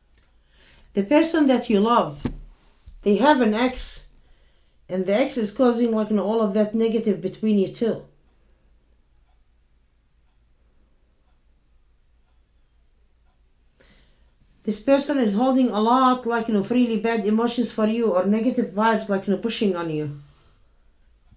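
A middle-aged woman speaks calmly and thoughtfully into a nearby microphone, with pauses.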